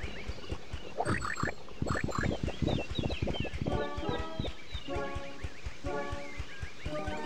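Short chimes ring as a small pig character picks up cookies.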